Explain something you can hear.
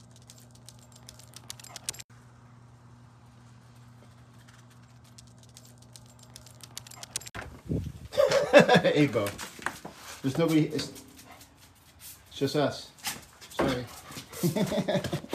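A dog's paws patter and claws click on a hard floor.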